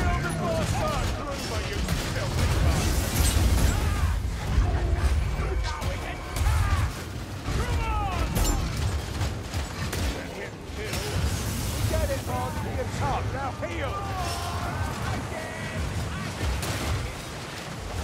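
Weapons clash and thud against armour in close combat.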